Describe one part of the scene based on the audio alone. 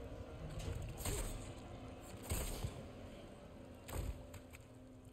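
A knife slashes with sharp, heavy thuds.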